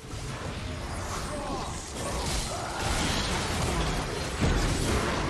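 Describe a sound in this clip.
Spell effects whoosh and crackle in a fast game fight.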